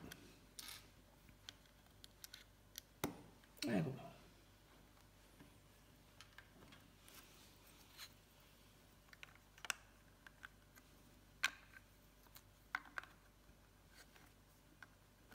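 Small plastic bricks click and rattle as hands fit them together.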